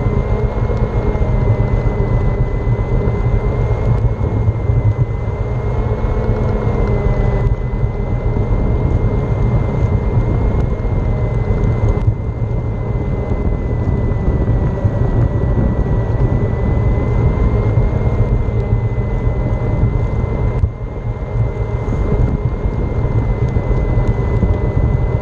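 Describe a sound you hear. Wind buffets loudly against the microphone.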